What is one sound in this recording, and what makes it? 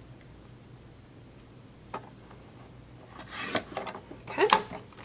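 A paper trimmer blade slides along and slices through card.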